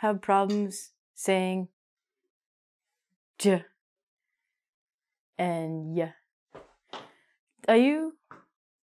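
A young woman speaks clearly and with animation into a close microphone, pausing between words.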